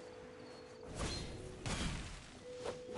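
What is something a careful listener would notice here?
A sword swings with a sharp whoosh.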